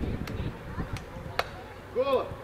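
Two men slap their hands together in a sharp clap.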